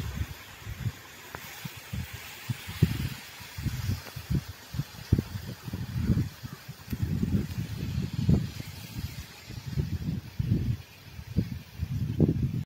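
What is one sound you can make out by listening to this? Wind gusts roughly against the microphone outdoors.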